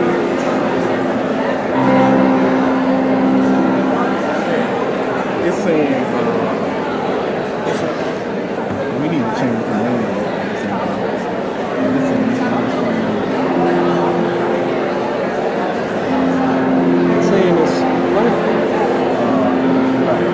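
A piano plays slowly in a large echoing hall.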